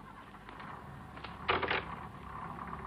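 A wooden shutter door swings open with a clatter.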